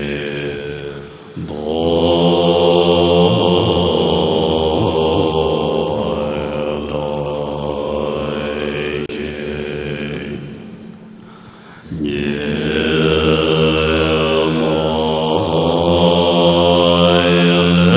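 A large group of men chant together in steady, drawn-out tones.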